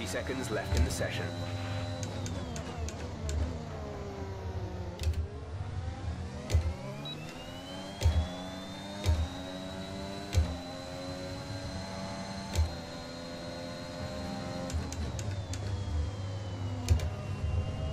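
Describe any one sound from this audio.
A racing car engine whines loudly, its pitch rising and falling with gear changes and braking.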